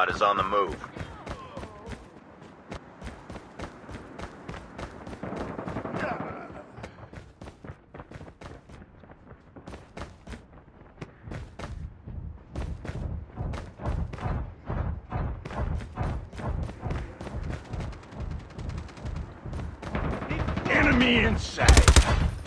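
Quick footsteps run across hard ground.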